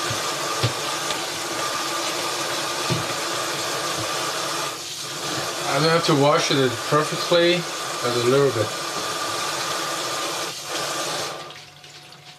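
Water runs steadily from a tap into a sink.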